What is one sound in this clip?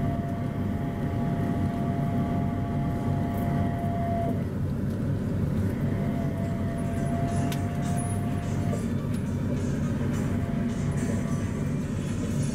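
A train rumbles steadily along an elevated track, heard from inside the carriage.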